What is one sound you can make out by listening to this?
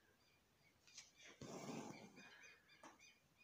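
Thread rustles as it is pulled through cloth.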